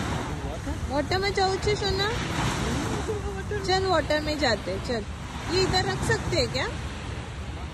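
A young child calls out in a high voice close by.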